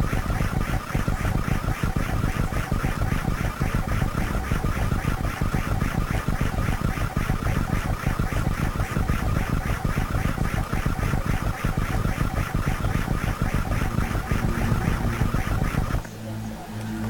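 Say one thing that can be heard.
Rapid electronic game sound effects pulse loudly and steadily, then stop abruptly.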